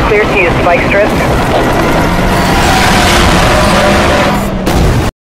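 A powerful car engine roars at high speed.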